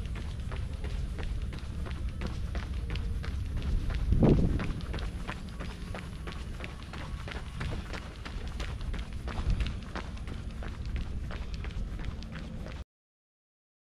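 Footsteps thud steadily as a runner jogs.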